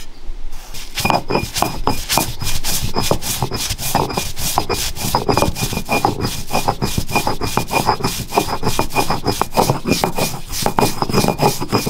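A stone roller grinds back and forth on a stone slab with a rough, rhythmic scraping.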